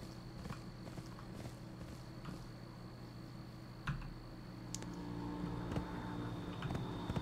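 Metal hooves clank in a steady walking rhythm.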